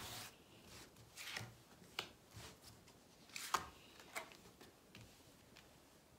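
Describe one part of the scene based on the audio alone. Cards are laid down and slid on a cloth-covered table.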